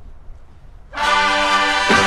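A marching band suddenly bursts into a loud, sustained brass chord.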